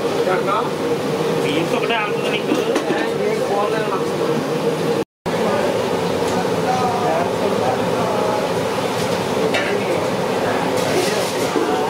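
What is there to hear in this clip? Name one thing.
Hot oil bubbles and sizzles loudly.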